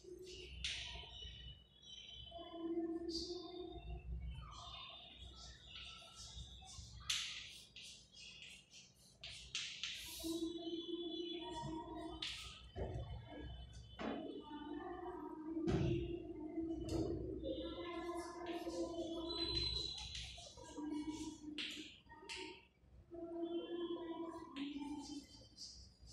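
A woman speaks calmly nearby, as if explaining.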